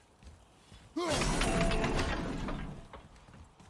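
A heavy metal mechanism crashes and rattles loudly.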